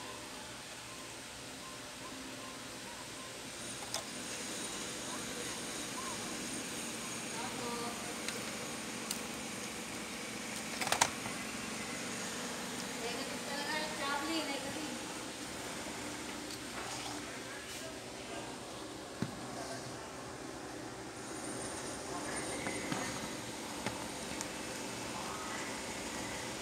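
Plastic parts of a printer mechanism click and rattle.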